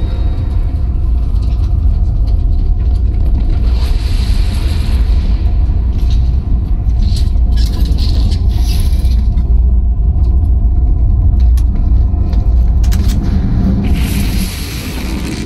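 A deep electronic drone hums steadily.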